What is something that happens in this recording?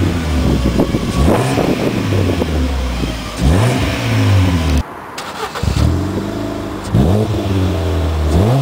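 A car engine idles and revs hard through a loud sports exhaust.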